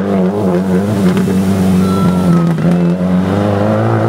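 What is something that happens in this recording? Water splashes and sprays under a speeding car's tyres.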